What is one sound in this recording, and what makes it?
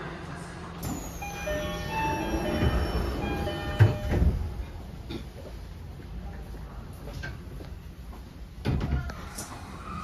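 Train doors slide shut with a thud.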